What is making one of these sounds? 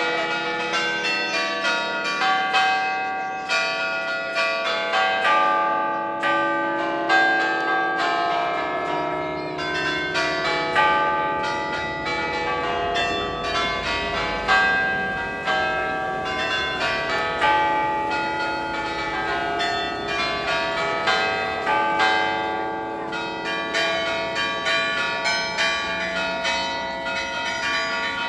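Church bells ring out in a quick, ringing peal, echoing outdoors.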